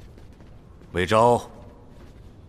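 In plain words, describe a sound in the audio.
An older man says a brief word in a low, calm voice.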